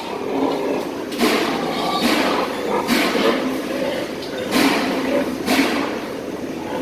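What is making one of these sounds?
Metal pen bars clank and rattle.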